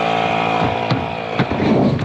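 Flames whoosh around a tyre.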